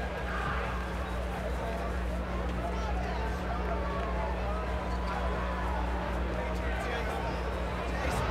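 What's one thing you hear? Young men shout and laugh excitedly close by.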